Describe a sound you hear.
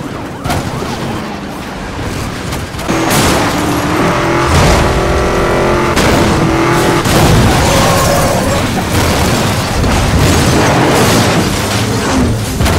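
A car crashes with a loud metallic crunch.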